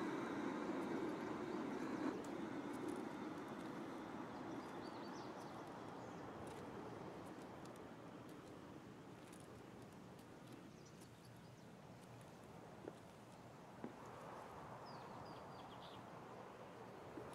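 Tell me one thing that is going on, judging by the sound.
Footsteps tread steadily over a hard stone floor.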